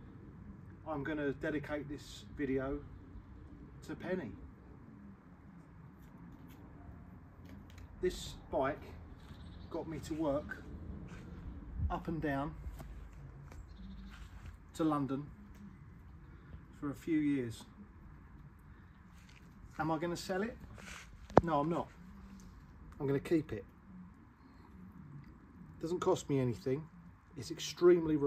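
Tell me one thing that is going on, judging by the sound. A middle-aged man talks calmly and close by, outdoors.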